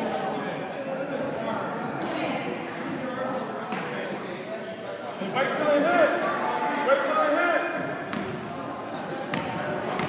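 Spectators shout and cheer in an echoing gym.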